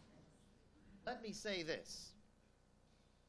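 An elderly man speaks briefly through a microphone.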